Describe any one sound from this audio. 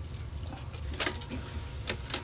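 Buttons on a tape machine click as they are pressed.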